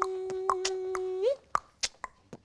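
A woman laughs close by.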